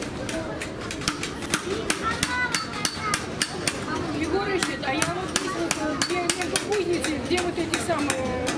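A hammer taps rapidly on wood.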